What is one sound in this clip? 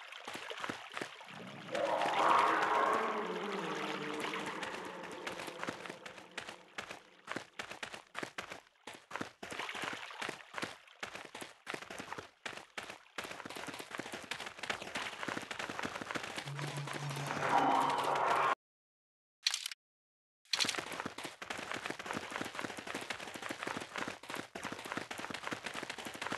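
Footsteps tread steadily on a hard cave floor.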